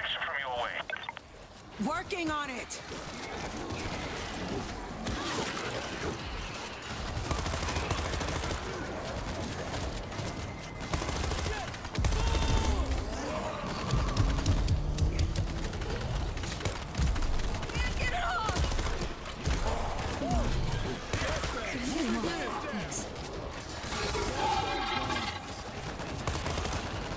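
Zombies snarl and shriek.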